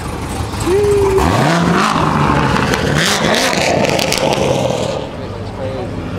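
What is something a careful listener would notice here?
A sports car engine revs loudly and roars away.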